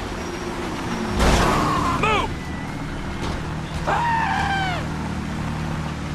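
Small off-road engines buzz and whine loudly as they pass close by.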